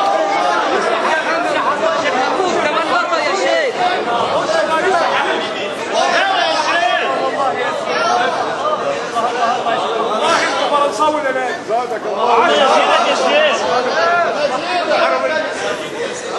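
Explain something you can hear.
A man chants in a melodic voice close to a microphone.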